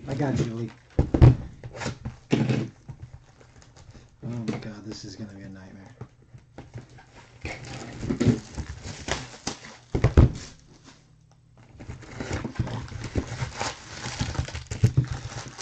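Cardboard boxes knock and thump as they are moved.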